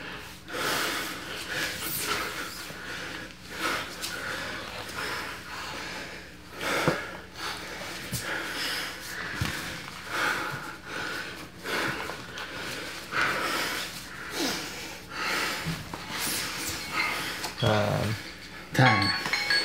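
Bodies shift and rub on a padded mat.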